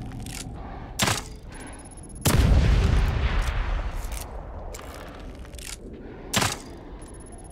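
A crossbow bolt fires with a sharp snap.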